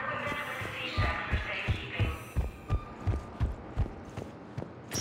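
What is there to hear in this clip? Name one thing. Heavy footsteps thud on a hard metal floor.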